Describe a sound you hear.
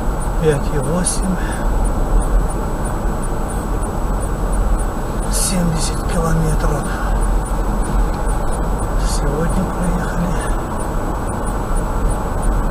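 A car drives steadily along a road with a low rumble of tyres and engine.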